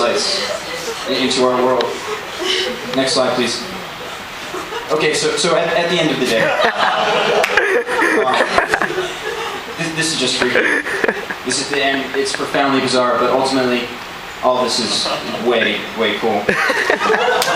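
A man speaks to an audience through a microphone in a large hall.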